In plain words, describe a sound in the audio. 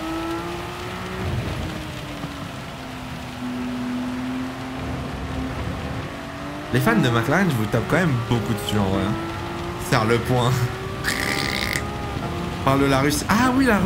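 A racing car engine hums steadily and revs up through the gears.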